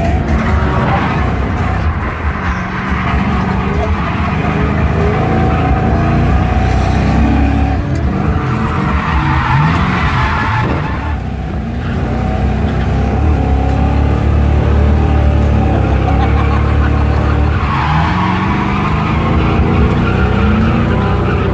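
Tyres squeal and screech on the pavement.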